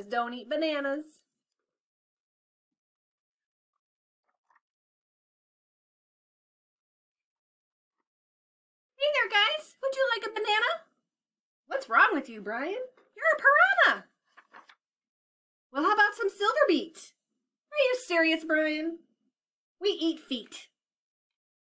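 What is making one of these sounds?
A woman reads aloud expressively, close to a microphone.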